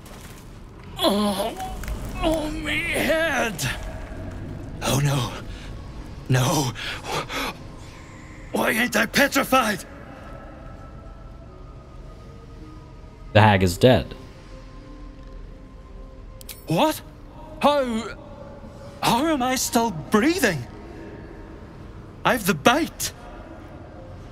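A middle-aged man speaks with feeling in a rough voice, close by.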